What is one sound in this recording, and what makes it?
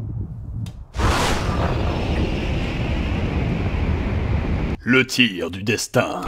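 A bullet whooshes through the air in slow motion.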